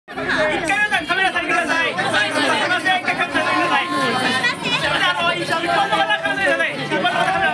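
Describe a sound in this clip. A group of young men and women cheer and shout excitedly together, close by.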